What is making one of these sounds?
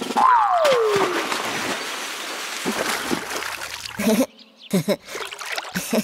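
Water splashes loudly as something drops into it.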